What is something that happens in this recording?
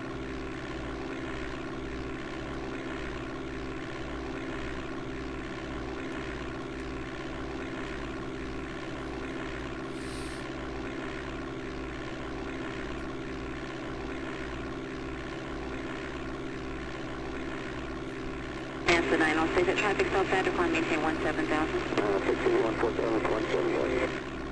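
A steady engine drone hums from a small plane in flight.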